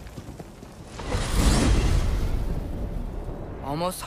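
A low magical whoosh swells and fades.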